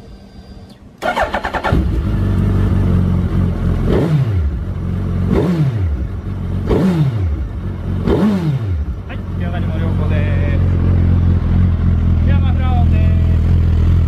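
A motorcycle engine starts and idles with a deep rumble.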